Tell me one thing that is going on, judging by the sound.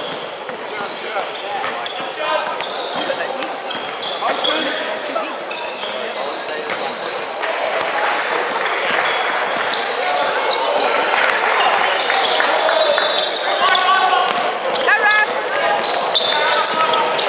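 A crowd of voices chatters and shouts in a large echoing hall.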